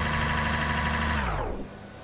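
A racing car engine shuts off abruptly.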